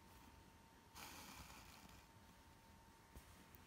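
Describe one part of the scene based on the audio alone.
A thread is pulled through cloth with a soft rustle.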